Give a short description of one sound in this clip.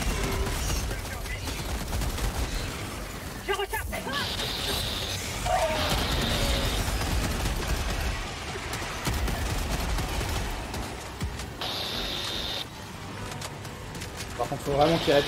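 Gunfire rattles steadily.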